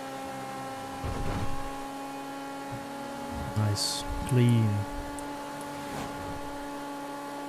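A young man talks into a close microphone.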